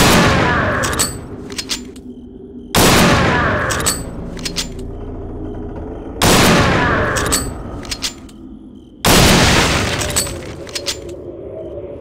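A rifle bolt clicks and clacks as it is worked.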